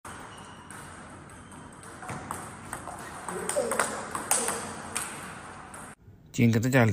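A table tennis ball clicks back and forth against paddles and a table.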